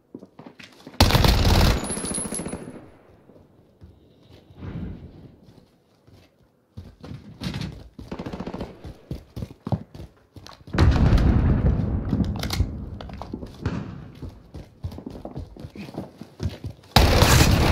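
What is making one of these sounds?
A rifle fires loud bursts of shots.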